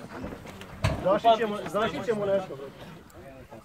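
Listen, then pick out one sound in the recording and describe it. A man speaks loudly close by.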